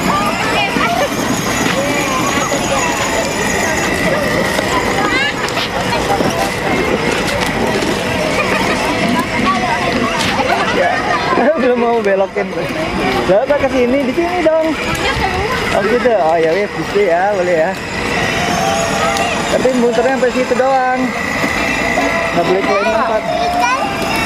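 Children and adults chatter outdoors.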